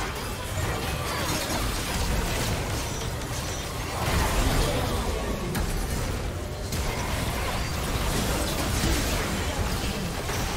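Spell effects crackle and blast in a busy fight.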